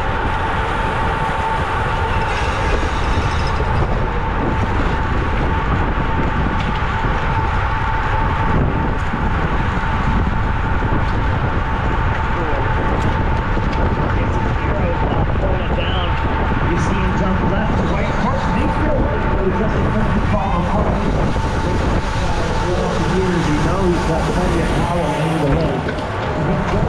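Bicycle tyres hum on pavement.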